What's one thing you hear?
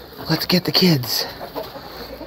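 A young goat bleats close by in short, falling cries.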